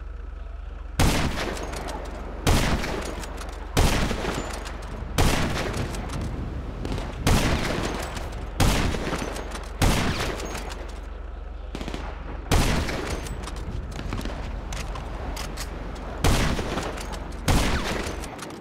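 A rifle fires single loud shots that echo after each one.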